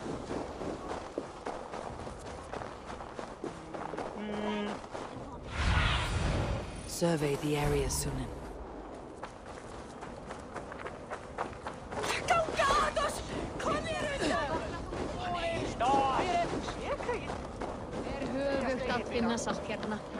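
Footsteps crunch through snow at a running pace.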